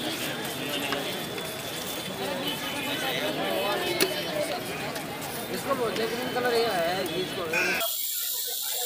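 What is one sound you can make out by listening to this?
Voices murmur in a busy outdoor crowd.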